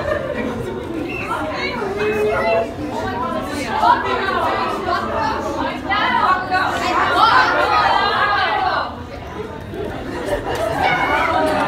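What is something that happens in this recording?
A young woman speaks with animation to a crowd.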